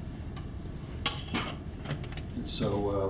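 Metal pieces clunk as they are handled.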